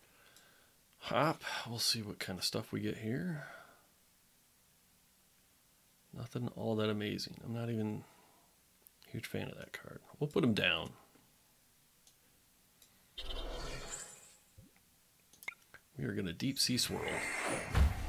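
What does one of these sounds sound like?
A man talks calmly and closely into a microphone, in bursts with pauses.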